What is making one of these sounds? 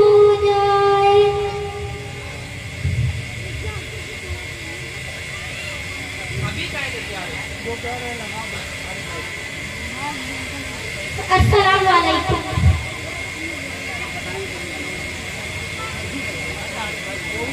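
A young girl recites in a chanting voice through a microphone.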